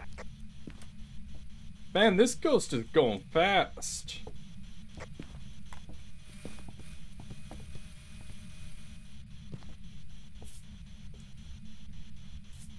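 Footsteps knock on wooden floorboards.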